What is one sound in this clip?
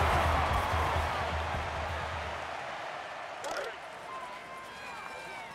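A stadium crowd roars and slowly fades.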